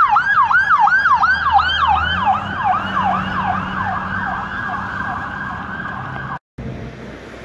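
An ambulance siren wails quickly up and down.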